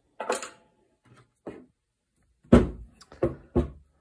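A wooden gun stock knocks against a wooden workbench.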